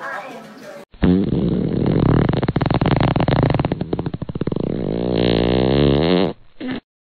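A sleeping dog snores loudly.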